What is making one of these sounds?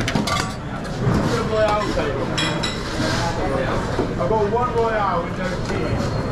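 Kitchen equipment hums steadily in the background.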